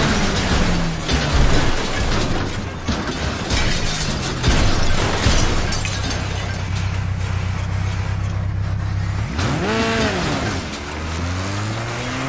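A truck engine drones steadily, rising and falling in pitch.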